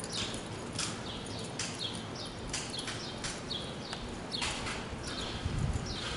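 Hooves skid and scrape through loose dirt.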